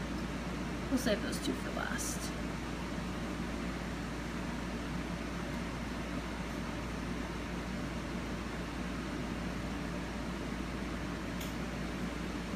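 Small scissors snip at an eggshell with quiet clicks.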